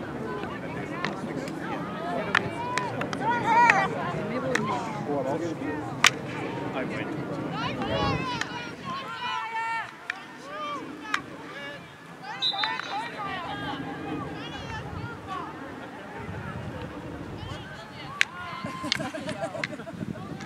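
Field hockey sticks clack against the ball.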